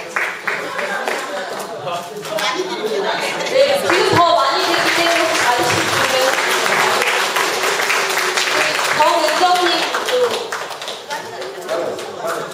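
A crowd of women chatters and laughs loudly in an echoing room.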